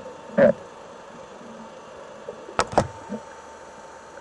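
Air bubbles gurgle and rumble underwater.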